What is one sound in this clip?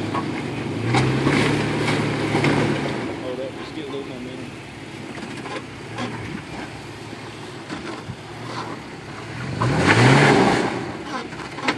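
A vehicle engine revs up briefly.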